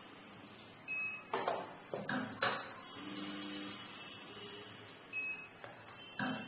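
An electronic machine beeps briefly.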